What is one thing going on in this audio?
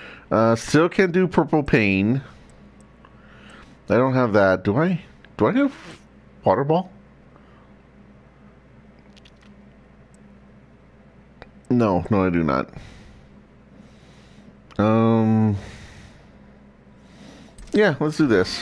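A man talks into a close microphone with animation, in short bursts.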